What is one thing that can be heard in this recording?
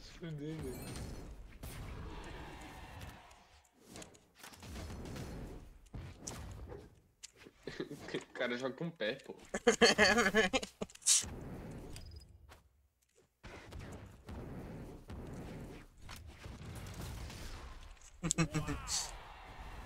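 Sharp hits and whooshes of a cartoon fight land in quick bursts.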